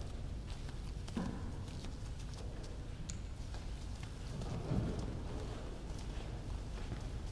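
Footsteps pass by across a hard floor.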